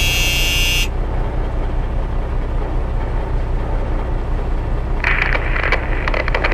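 A tractor engine rumbles low and steady.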